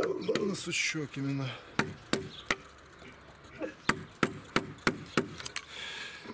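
A mallet knocks on a chisel, cutting into wood.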